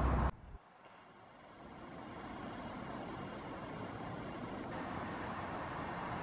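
A diesel train approaches with a low hum.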